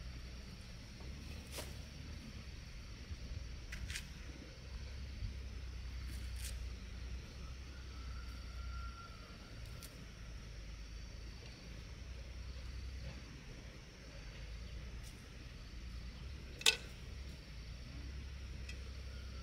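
Dry leaves and soil rustle under digging hands.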